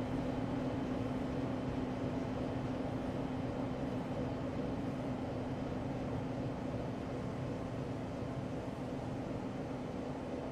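A diesel locomotive engine drones steadily as a train rolls past.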